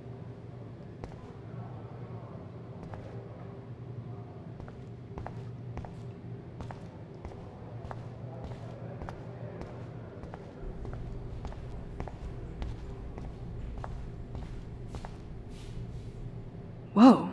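Footsteps tap steadily on a hard tiled floor.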